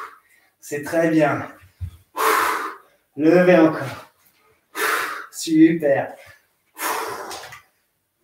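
A man speaks in short, breathy bursts close by.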